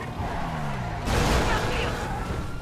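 A car crashes with a loud thud.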